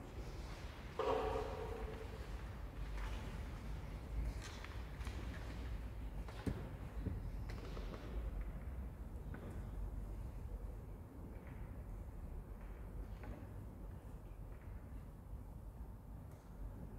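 A string orchestra plays softly in a large echoing hall.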